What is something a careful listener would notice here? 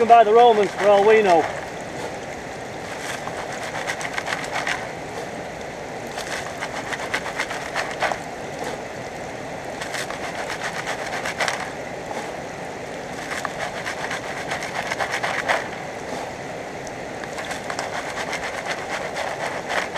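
A stream flows steadily nearby.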